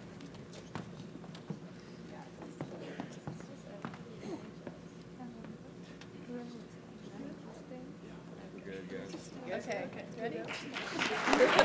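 Young people murmur and chat quietly.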